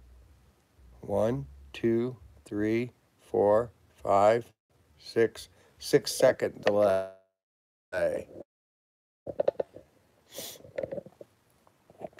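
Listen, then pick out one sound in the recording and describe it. An elderly man speaks close to the microphone in short, animated bursts.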